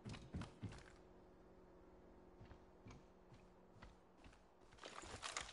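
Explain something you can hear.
Footsteps thud quickly on hard floor.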